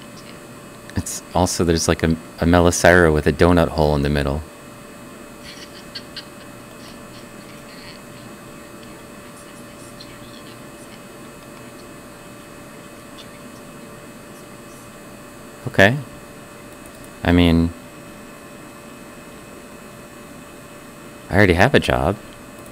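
A middle-aged man speaks with animation through a headset microphone, in short bursts.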